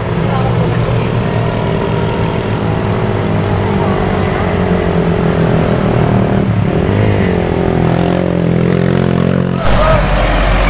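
Motorcycle engines hum and rev as they climb past.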